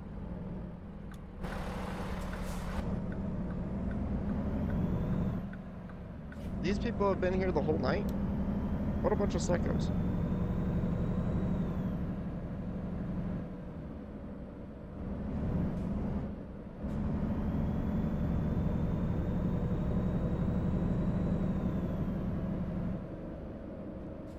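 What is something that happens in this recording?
A truck engine hums steadily as it drives along a road.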